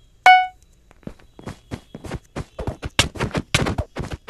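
Quick game hits and thuds come in a rapid burst.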